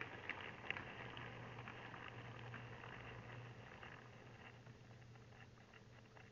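A small electric motor hums steadily as a model train rolls along.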